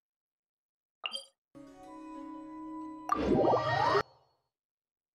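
A soft chime and whoosh play as a teleport starts.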